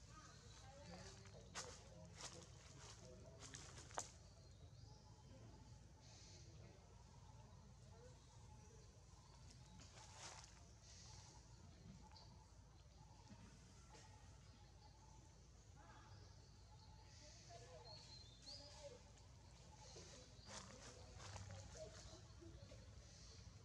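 A monkey scratches its fur softly.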